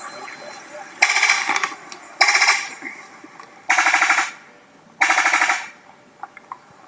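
A bird gives loud, harsh rattling bursts, several times in a row.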